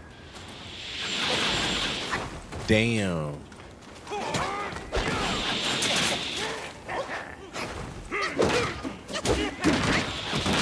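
A staff strikes and clashes in a fight.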